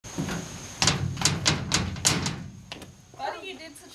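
A small child's footsteps patter on stone outdoors.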